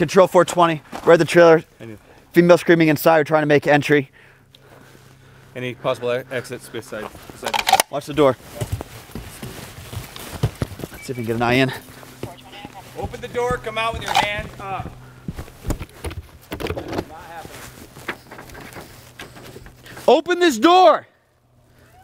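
A man speaks in a low, urgent voice close by.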